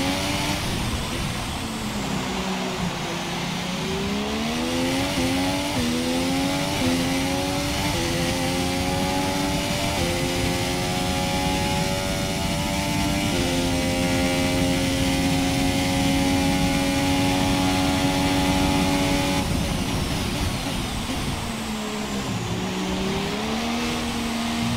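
A racing car engine drops in pitch as the car slows.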